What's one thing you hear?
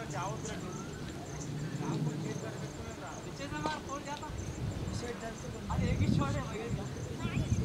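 Young men talk and call out nearby across an open outdoor field.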